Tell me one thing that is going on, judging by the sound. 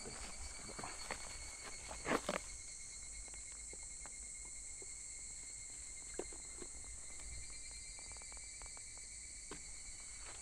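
Footsteps crunch on dry twigs and leaves in the undergrowth.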